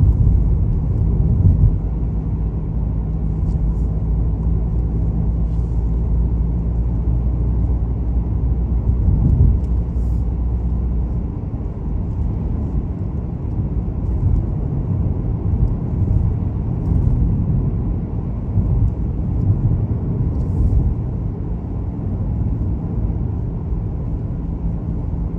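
Tyres rumble on the road, heard from inside a car.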